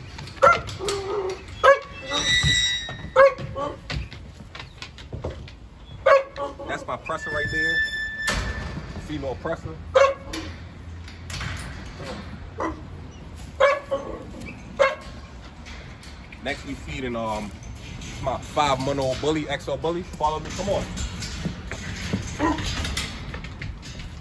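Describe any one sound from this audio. A metal kennel gate rattles and clanks.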